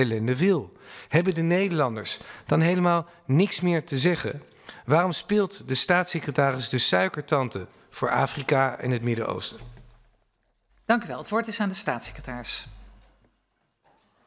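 A man speaks steadily and formally through a microphone.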